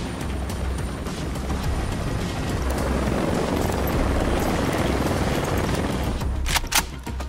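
A small helicopter hovers with a thudding rotor.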